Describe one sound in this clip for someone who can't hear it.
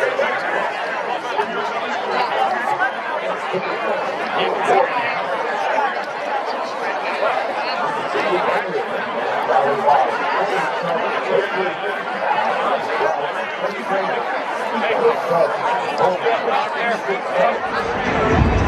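A crowd murmurs and chatters in the outdoor stands.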